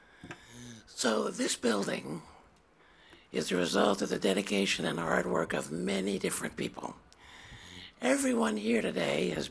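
An elderly man speaks calmly through a microphone outdoors.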